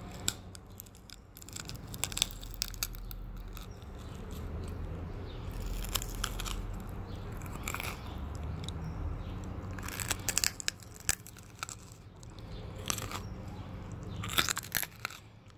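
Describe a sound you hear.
Crunchy food crackles between teeth up close.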